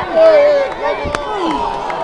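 A young man shouts loudly.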